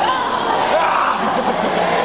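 A young man shouts with his mouth wide open.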